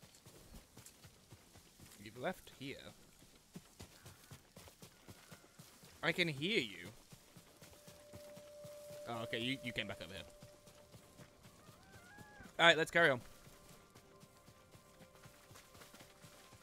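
Footsteps swish through long grass.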